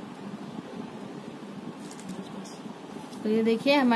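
Crisp potato chips rustle softly as they are pressed onto bread.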